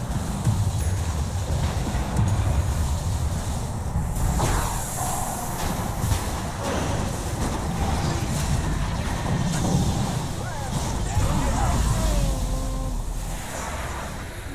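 Magic spells crackle and burst in a fast fight.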